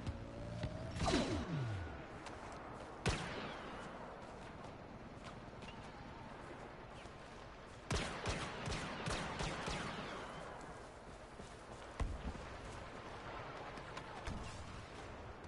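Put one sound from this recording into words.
Laser blaster shots fire in sharp, echoing bursts.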